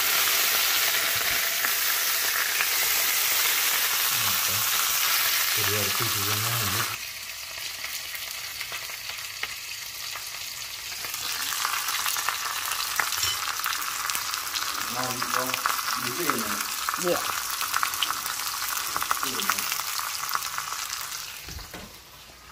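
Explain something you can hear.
Meat sizzles loudly in a hot frying pan.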